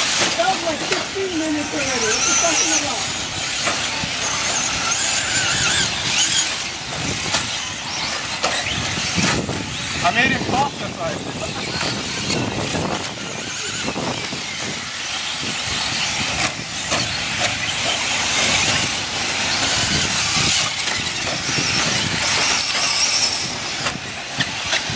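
Model car tyres skid and scrape on dirt.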